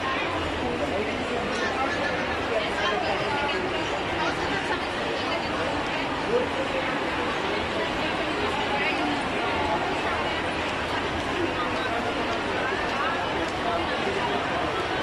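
A crowd of shoppers chatters in a large echoing indoor hall.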